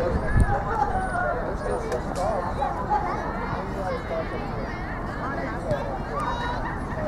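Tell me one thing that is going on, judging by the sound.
A crowd of parents and children shout and cheer outdoors nearby.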